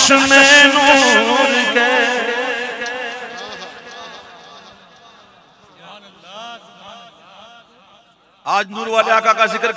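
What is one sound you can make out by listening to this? An elderly man sings loudly into a microphone, echoing through a loudspeaker.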